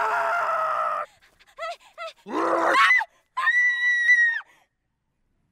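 A young woman shouts and cries out loudly nearby.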